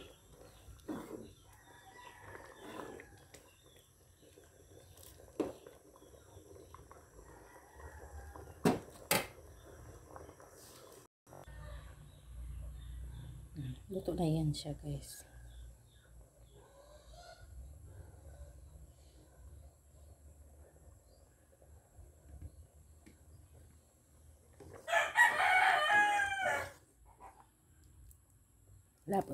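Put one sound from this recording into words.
A spoon stirs thick sauce in a pot.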